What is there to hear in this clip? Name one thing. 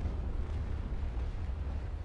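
Cannons boom in the distance.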